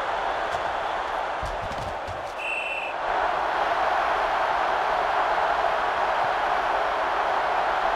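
A stadium crowd roars steadily, growing louder.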